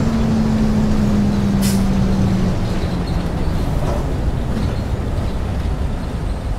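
A bus engine hums low and steady as the bus drives along.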